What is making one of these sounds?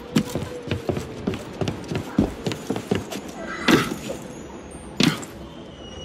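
Footsteps patter quickly along a taut rope.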